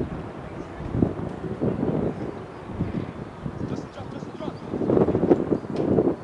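Young players shout faintly to each other across an open field.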